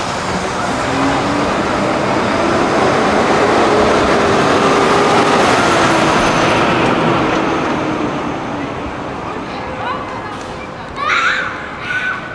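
City traffic roars steadily along a street outdoors.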